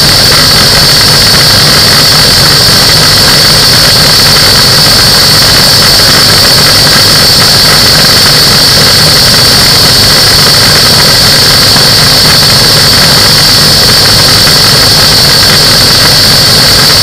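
A small propeller engine drones steadily and loudly, close by.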